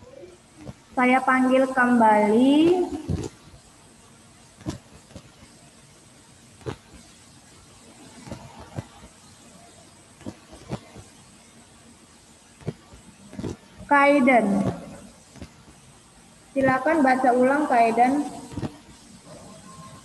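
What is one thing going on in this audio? A child speaks in a sing-song voice over an online call.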